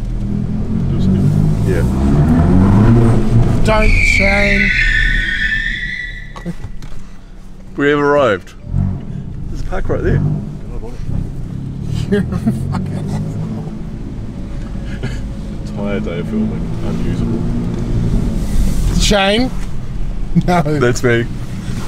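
A car engine rumbles low and revs as the car drives slowly.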